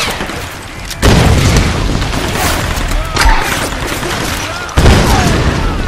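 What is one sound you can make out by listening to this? Loud explosions boom nearby.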